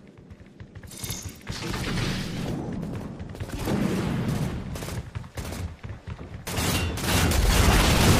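Heavy gunfire blasts and booms in rapid bursts.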